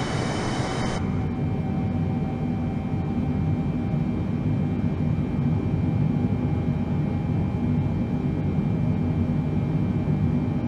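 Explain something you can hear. Jet engines hum deep and steady, muffled inside a cockpit.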